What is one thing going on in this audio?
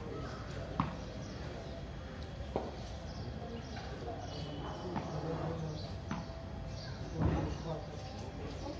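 A broom scrapes across paving some way off.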